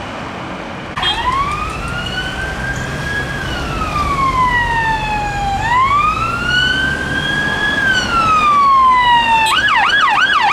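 A siren wails up and down close by.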